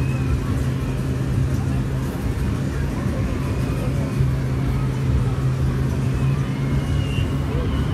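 A motor hums steadily.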